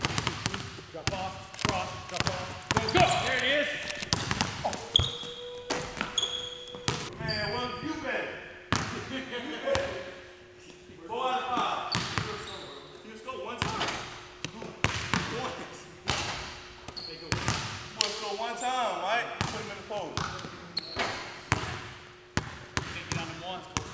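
A basketball bounces on a hard wooden floor in an echoing gym.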